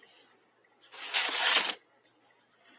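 A sheet of paper rustles as a sketchbook is shifted.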